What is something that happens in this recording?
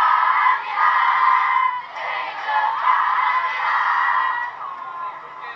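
A large crowd sings together outdoors.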